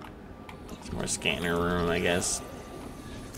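A scanning device hums with a rising electronic tone.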